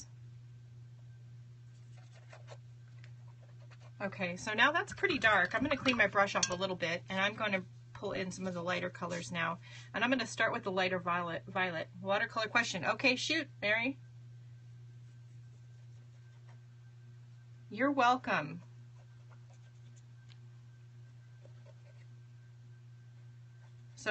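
A paintbrush dabs and strokes softly on paper.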